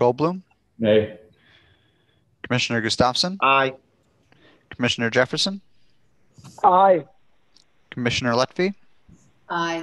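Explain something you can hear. An elderly man speaks calmly over an online call.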